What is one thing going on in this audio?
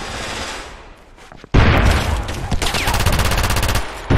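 A grenade explosion booms and rumbles away.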